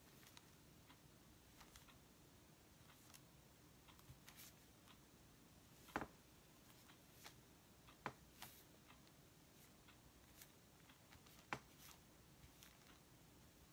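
A paintbrush taps and dabs lightly on a painted board.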